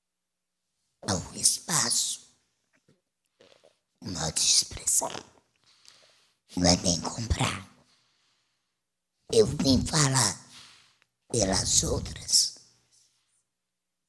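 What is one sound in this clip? A woman speaks calmly into a microphone in short phrases with pauses.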